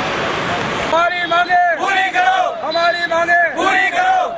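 A crowd of men chants slogans loudly in unison outdoors.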